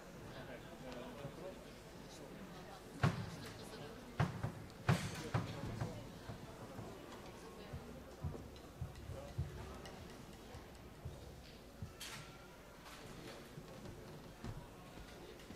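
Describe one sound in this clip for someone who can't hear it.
A wind band plays softly in a large hall.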